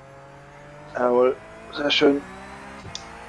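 A young man calls out twice into a microphone.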